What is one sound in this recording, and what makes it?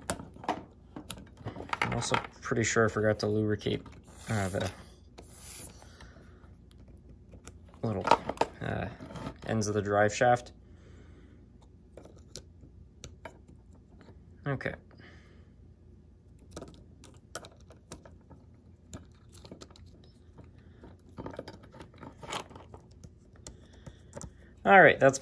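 Small plastic parts click and tap as fingers handle them.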